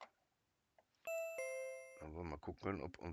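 A cash register chimes with a bright ringing tone.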